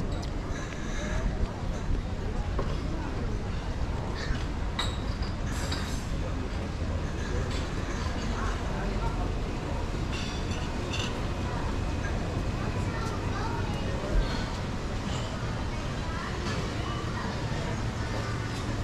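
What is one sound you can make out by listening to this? Footsteps tap steadily on a paved walkway outdoors.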